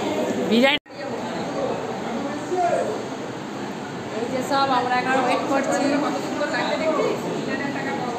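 A middle-aged woman speaks cheerfully right up close.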